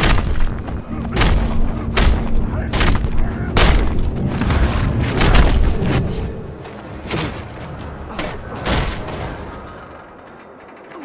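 Heavy punches and blows land in a brawl, thudding hard and fast.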